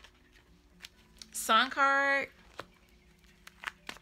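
A playing card is laid down softly on a cloth.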